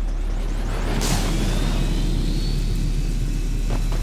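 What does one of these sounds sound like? An energy door bursts open with a loud rushing whoosh.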